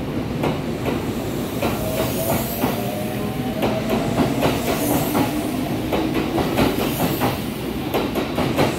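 An electric train's motor whines, rising in pitch as the train pulls away.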